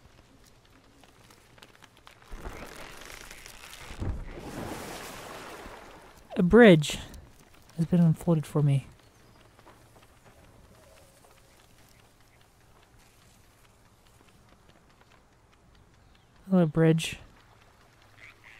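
Light footsteps patter on the ground.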